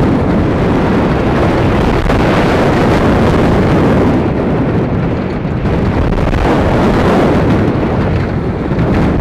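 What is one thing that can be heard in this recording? Wind roars loudly past the microphone.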